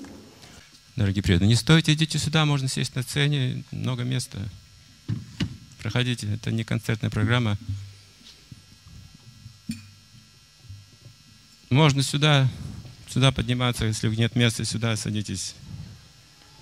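An elderly man speaks calmly into a microphone, heard through a loudspeaker in a large hall.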